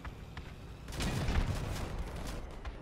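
A burst of gunfire rattles.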